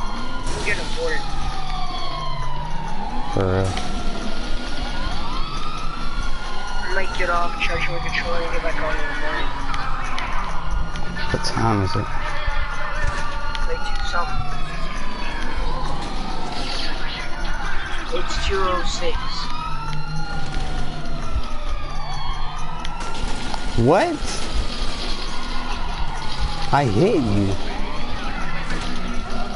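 A police siren wails up and down, loud and close.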